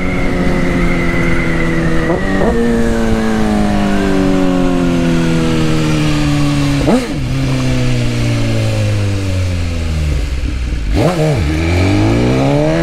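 A motorcycle engine roars, its pitch rising and dropping with each gear change.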